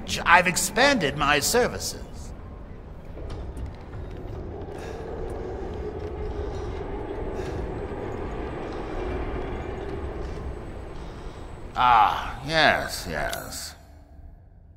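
An elderly man speaks in a deep, amused voice.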